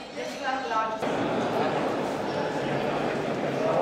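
A crowd of adult visitors murmurs softly in a large echoing hall.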